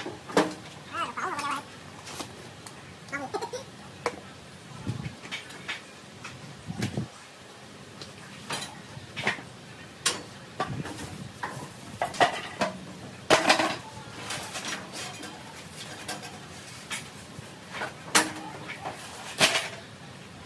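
Metal parts clank and knock as a man handles them.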